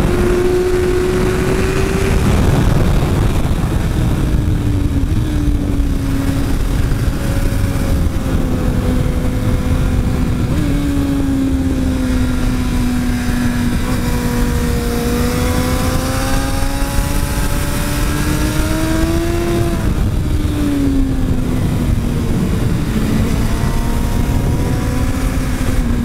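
A motorcycle engine roars close by, its pitch rising and falling with the gear changes.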